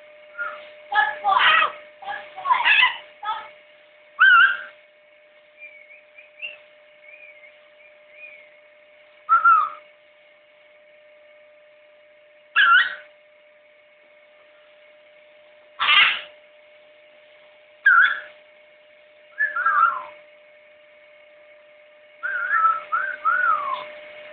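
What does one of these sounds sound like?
A macaw squawks and calls loudly, close by, in short bursts.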